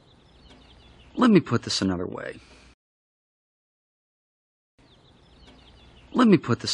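A man speaks calmly and wearily.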